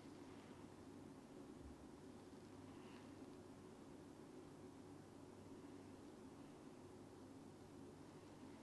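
Fingertips rub softly through hair close by.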